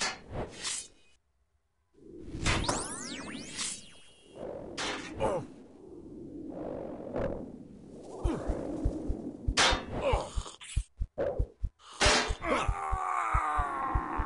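Game combat sounds of hits and spell blasts ring out repeatedly.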